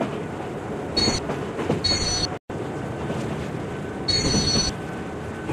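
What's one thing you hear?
A high warning tone beeps a few times.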